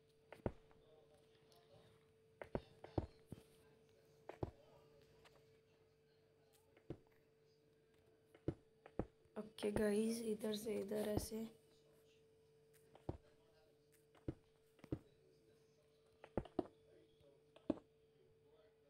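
Blocks are placed with short, soft thuds at irregular intervals.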